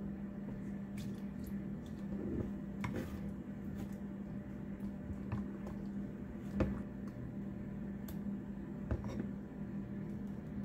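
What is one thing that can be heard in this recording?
A plastic spatula scrapes and clicks against a glass bowl while stirring a thick batter.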